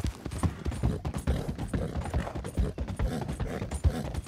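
A horse's hooves clatter on a wooden bridge.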